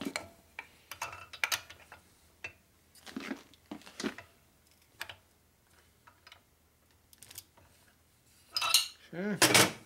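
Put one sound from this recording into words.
A block of wood knocks against a metal engine.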